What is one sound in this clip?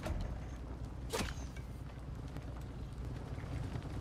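An arrow thuds into a body.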